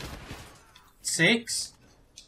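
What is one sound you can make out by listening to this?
A young man exclaims loudly into a close microphone.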